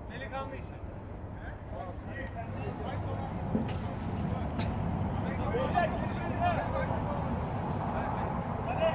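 Young men shout to each other across an open pitch.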